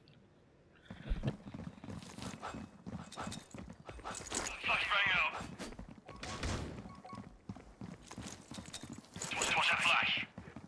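Footsteps patter quickly on hard ground.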